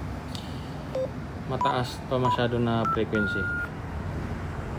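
A handheld radio beeps as its buttons are pressed.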